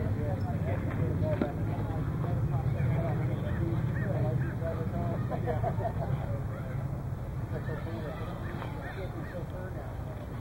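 Spectators and players chatter and call out nearby outdoors.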